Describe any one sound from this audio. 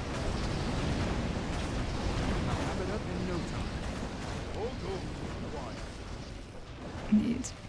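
Fiery magic bolts whoosh and crackle in a busy battle.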